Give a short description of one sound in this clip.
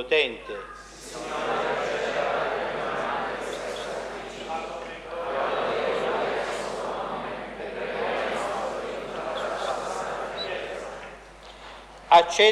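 A crowd of people recites together in a low murmur, echoing around a large hall.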